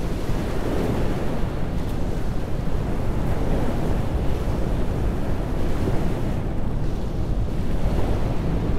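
Water churns and rushes in a ship's wake.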